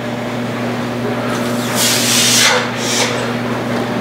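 A man blows out a hard breath.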